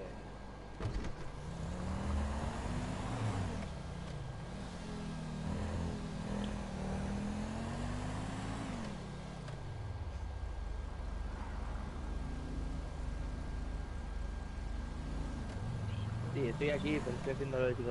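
A car engine revs, rising and falling in pitch as the car speeds up and slows down.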